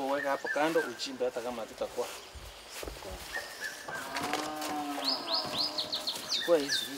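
A man talks with animation outdoors nearby.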